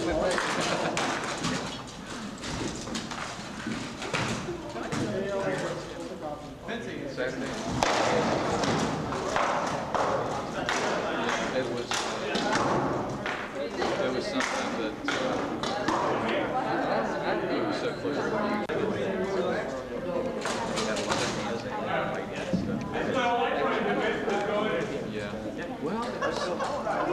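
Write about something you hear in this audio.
Wooden swords strike shields and armour with sharp knocks.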